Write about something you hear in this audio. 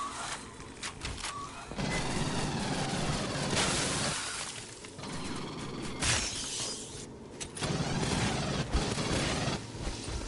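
Rapid gunfire rattles in short, loud bursts.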